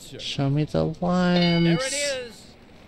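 A game show chime rings out as an answer is revealed.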